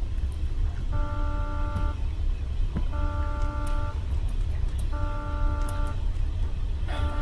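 An alarm blares in repeated, evenly spaced pulses.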